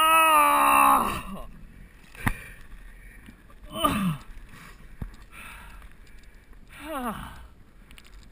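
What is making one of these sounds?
A man groans loudly close by.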